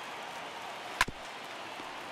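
A wooden bat cracks against a baseball.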